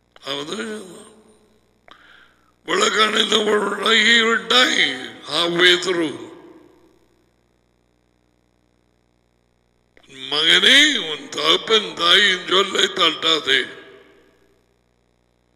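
A man speaks with animation into a close headset microphone.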